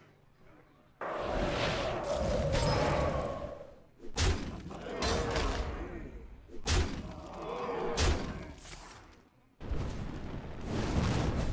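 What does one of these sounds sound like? Magical spell effects whoosh and shimmer.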